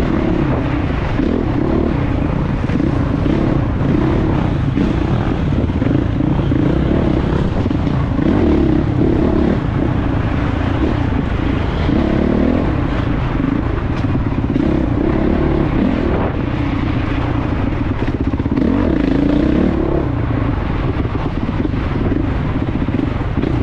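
Wind buffets against a helmet.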